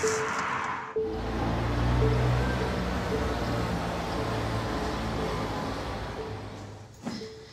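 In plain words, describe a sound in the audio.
Traffic hums in a city street.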